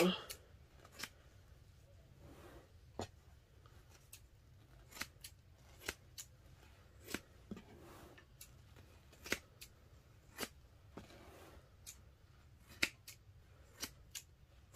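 Scissors snip through soft padding.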